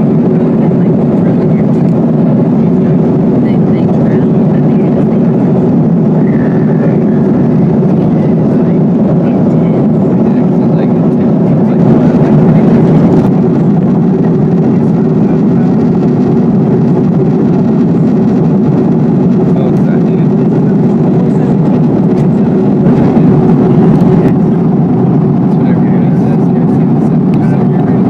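Jet engines roar steadily in a low, loud drone inside an airliner cabin.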